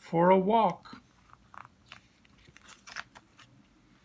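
A book page turns with a soft papery rustle.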